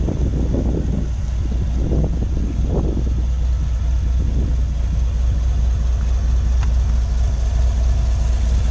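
An engine idles with a steady low rumble.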